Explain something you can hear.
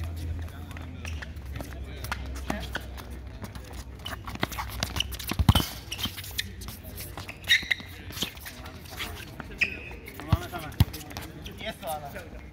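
Shoes scuff and squeak on the court.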